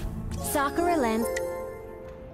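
A short bright game jingle plays.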